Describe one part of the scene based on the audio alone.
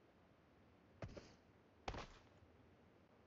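Footsteps tread along a dirt path.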